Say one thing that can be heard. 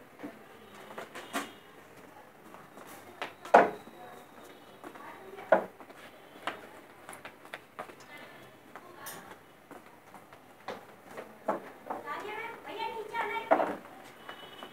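Objects knock and thump on a hard floor.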